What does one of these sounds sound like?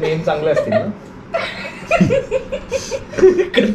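A young man laughs and talks with animation close by.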